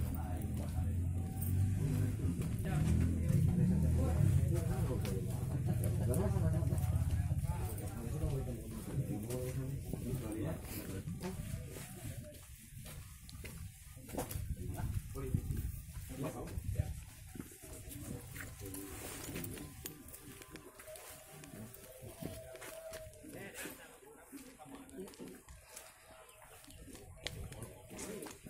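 Sandals scuff and slap on a dirt path as people walk.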